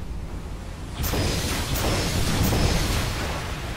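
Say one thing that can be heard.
Ship guns fire with deep, rumbling booms.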